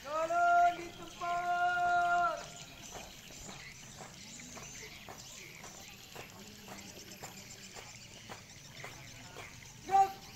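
A man shouts drawn-out marching commands loudly outdoors.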